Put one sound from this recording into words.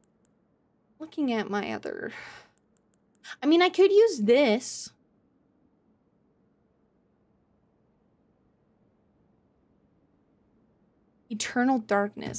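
A young woman speaks casually into a close microphone, in short bursts.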